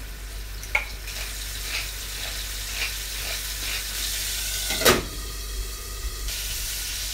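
Scallops sizzle softly in hot oil, growing louder.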